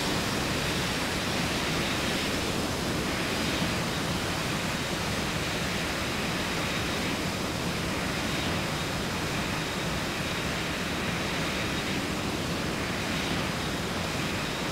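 A twin-engine jet airliner's engines roar as it taxis.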